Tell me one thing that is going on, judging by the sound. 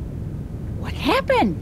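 A woman speaks.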